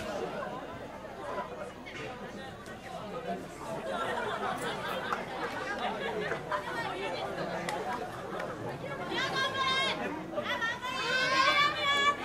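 A large outdoor crowd chatters and murmurs.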